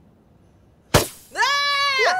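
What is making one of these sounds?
A party popper bangs.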